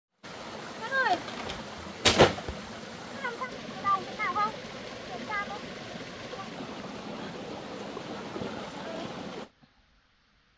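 Water flows steadily in a nearby stream.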